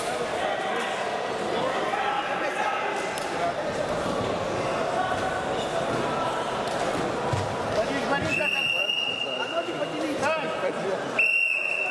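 Many voices murmur and call out in a large echoing hall.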